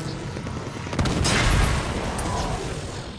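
An explosion booms in a video game.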